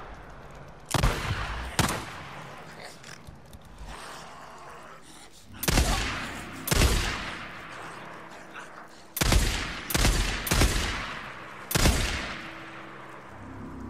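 Gunshots ring out loudly and echo away.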